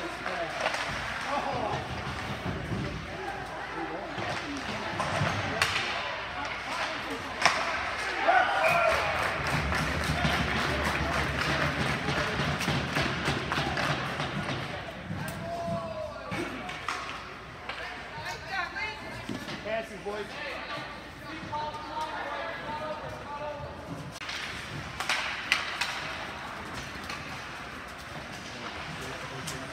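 Skates scrape and hiss across the ice in a large echoing rink.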